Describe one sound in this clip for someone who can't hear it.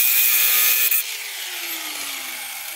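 An angle grinder spins down and fades out.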